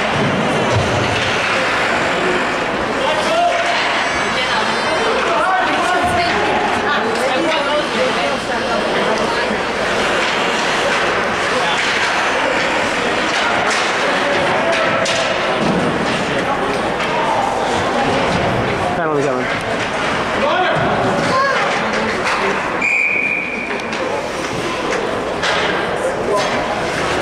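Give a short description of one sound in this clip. A crowd of people chatter and shout in a large echoing hall.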